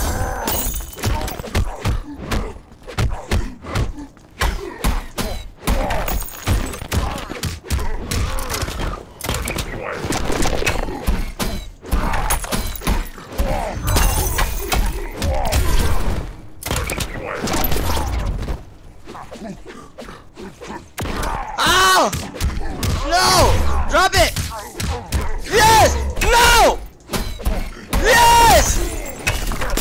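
Punches and kicks thud and crack in a fighting game.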